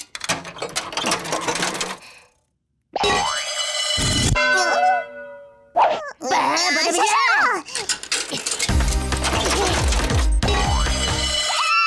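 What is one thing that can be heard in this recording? A coin clatters into a metal tray.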